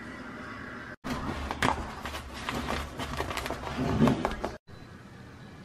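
Paper crinkles and rustles close by.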